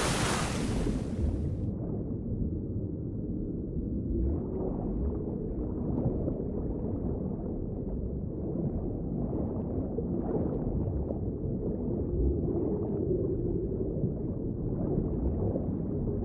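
Water rumbles deep and muffled underwater.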